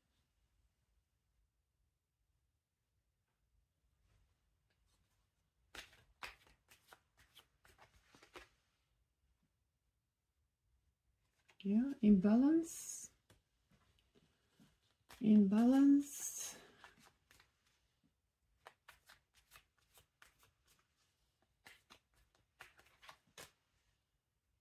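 Playing cards slide and tap softly on a table.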